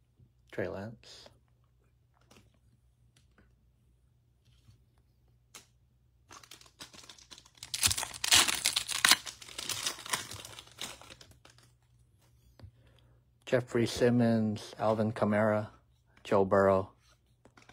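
Trading cards shuffle and rustle in someone's hands.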